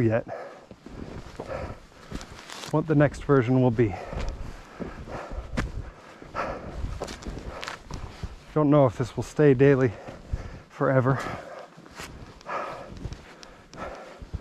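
Footsteps crunch and squeak through deep snow.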